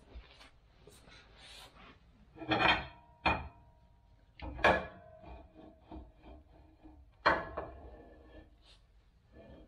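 Metal parts clink and clank sharply.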